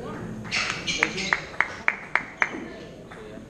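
A table tennis ball clicks back and forth on paddles and the table in a large echoing hall.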